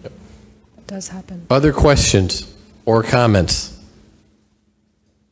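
A middle-aged man speaks into a handheld microphone, heard through a loudspeaker in a room.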